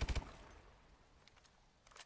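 A weapon reloads with metallic clicks.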